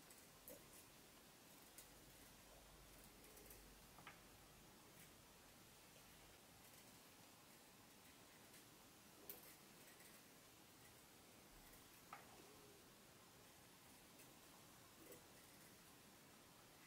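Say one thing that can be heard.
A knife peels thin strips from a carrot with soft scraping clicks.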